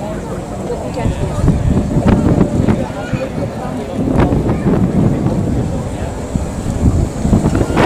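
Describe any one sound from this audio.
Wind rumbles against a microphone in gusts.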